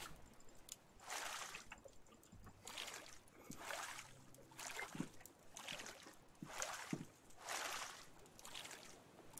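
A paddle splashes rhythmically through water.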